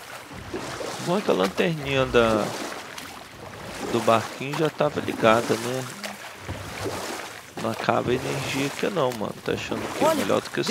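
A young man talks animatedly into a microphone, close by.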